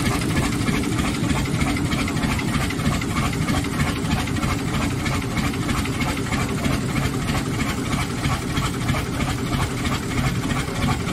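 A large stationary engine chugs steadily with rapid, rhythmic exhaust beats.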